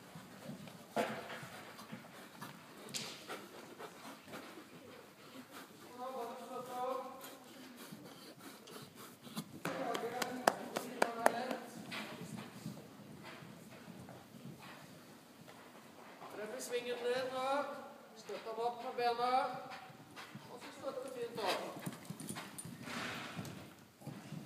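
Horse hooves thud softly on sand in a large echoing hall.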